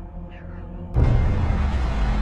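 A loud explosion bursts with a deep rumble.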